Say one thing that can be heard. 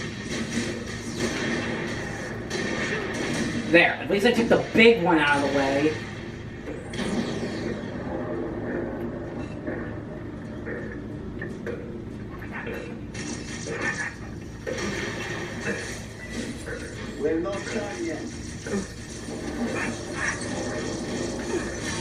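Video game music and effects play from a television loudspeaker.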